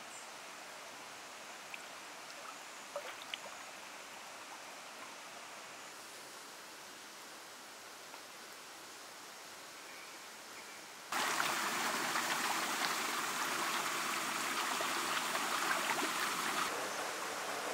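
Many fish splash and thrash in shallow water.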